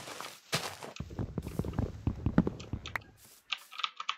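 Wood is chopped with a series of dull knocks.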